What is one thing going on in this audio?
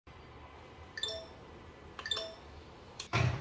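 A kettle beeps as its button is pressed.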